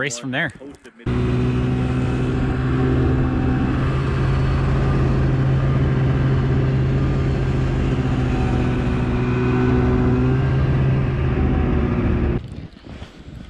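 A snowmobile engine hums loudly and steadily nearby.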